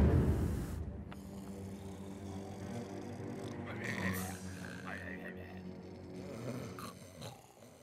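A boy snores softly in his sleep.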